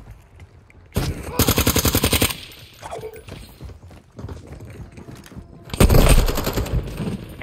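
Automatic gunfire rattles in fast bursts.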